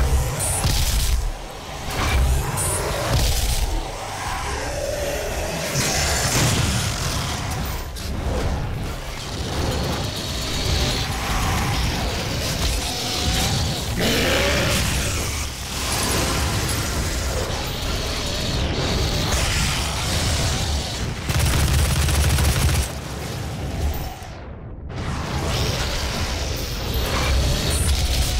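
Guns fire in rapid bursts with loud blasts.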